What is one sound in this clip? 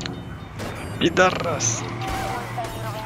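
A car crashes with a loud bang of metal.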